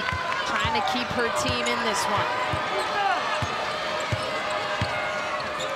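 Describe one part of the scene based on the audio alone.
A basketball bounces on a hardwood floor in a steady dribble.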